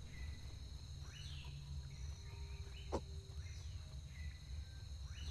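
A gorilla's footsteps thud softly on the ground.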